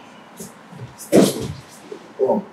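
Feet shuffle and thump on a padded mat.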